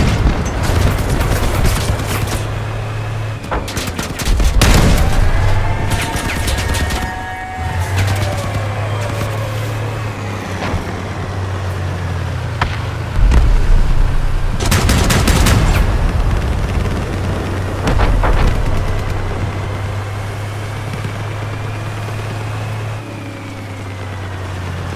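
A heavy armoured vehicle's engine rumbles steadily.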